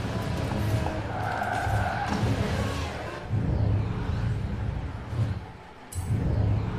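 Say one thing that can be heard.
A sports car engine roars loudly.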